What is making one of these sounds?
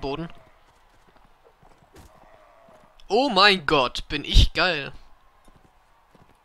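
A horse gallops over hard ground.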